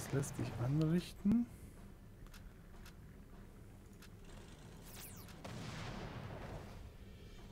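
An explosion bursts with a rumbling roar.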